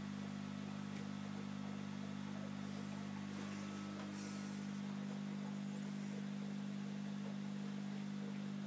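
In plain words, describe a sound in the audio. An aquarium filter hums steadily.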